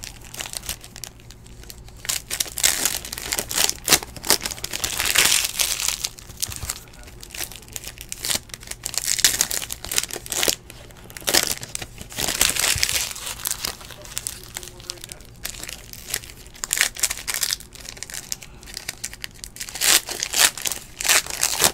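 Foil card wrappers crinkle and tear as they are opened.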